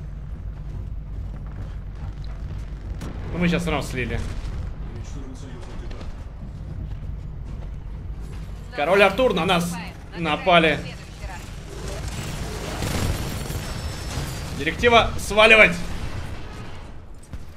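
Gunfire and explosions rumble from a video game.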